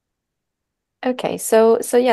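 A young woman speaks through an online call at the end.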